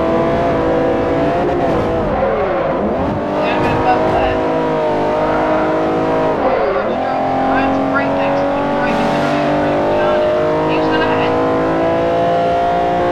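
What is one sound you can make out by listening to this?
Tyres squeal through a bend.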